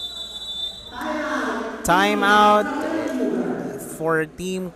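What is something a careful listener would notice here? Spectators in a gym cheer and shout.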